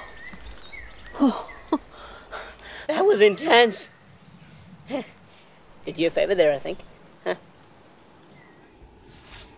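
A young woman speaks quietly, close by.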